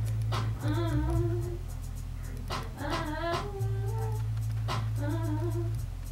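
A young woman sings in short, drawn-out phrases, close by.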